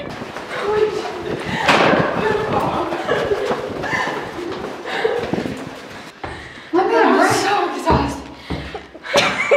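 Young women talk and laugh excitedly nearby.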